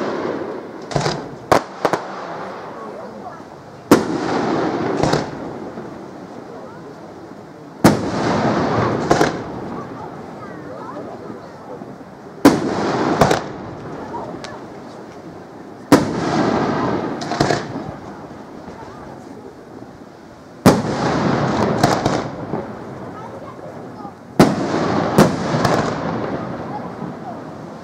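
Fireworks crackle and sizzle after bursting.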